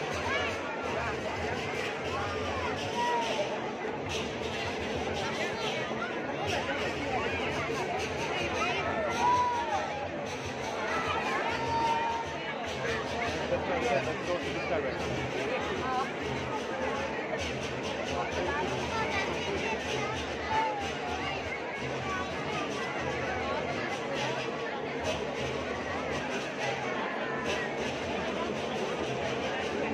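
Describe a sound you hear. A large crowd chatters and shouts loudly outdoors.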